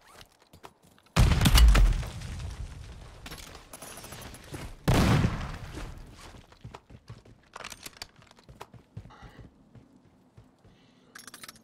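Footsteps crunch over rocks and grass.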